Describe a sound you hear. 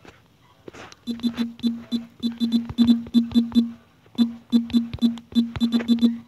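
Touchscreen keyboard taps click quickly and unevenly.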